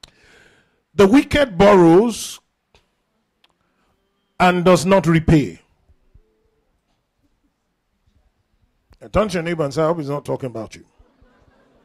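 A man preaches with animation through a microphone, in short bursts with pauses.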